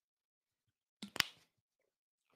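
A bottle cap clicks shut.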